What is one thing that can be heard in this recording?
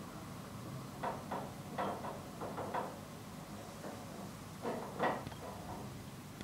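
A young woman speaks quietly, close to the microphone.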